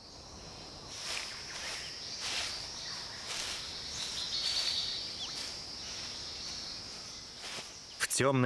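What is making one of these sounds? A large bird steps through dry leaves, rustling them.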